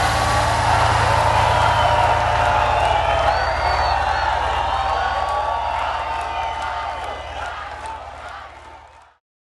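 A large crowd cheers and shouts loudly outdoors, then slowly fades away.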